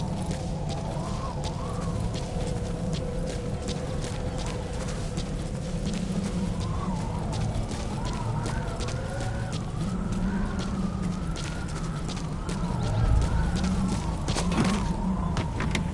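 Footsteps crunch over dry grass and gravel.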